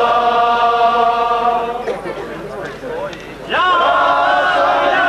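A group of men sing together loudly outdoors, close by.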